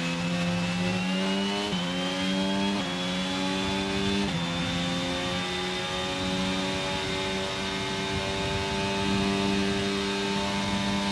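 A racing car engine screams at high revs, shifting up through the gears with brief dips in pitch.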